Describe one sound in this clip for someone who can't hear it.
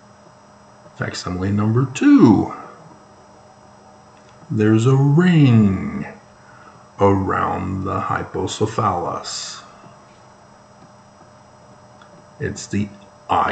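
A middle-aged man speaks calmly and expressively close to a microphone.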